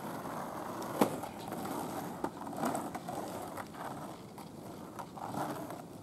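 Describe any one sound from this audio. Skateboard wheels click over cracks in the asphalt.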